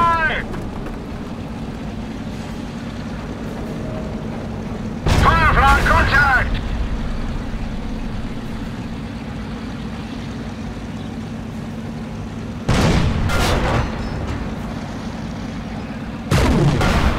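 A low battlefield rumble drones steadily in the background.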